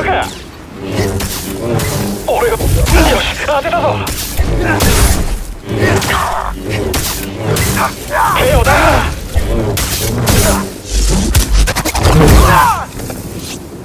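Laser swords hum and clash in a fast fight.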